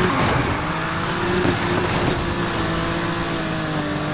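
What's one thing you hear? Tyres screech as a car drifts through a turn.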